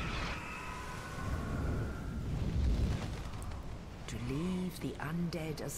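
Large wings beat with heavy whooshes.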